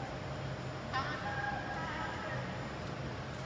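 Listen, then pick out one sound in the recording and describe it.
A young boy speaks briefly in an echoing indoor hall.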